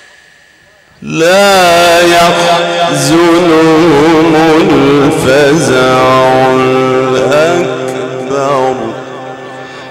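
A man chants loudly and melodiously through a microphone in a reverberant space.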